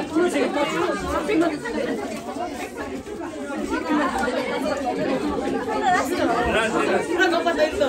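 Several voices chatter and talk over each other nearby.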